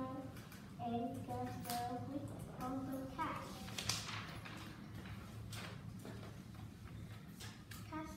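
A young girl speaks clearly and slowly nearby.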